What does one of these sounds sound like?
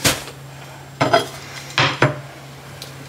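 A plate clicks down on a hard surface.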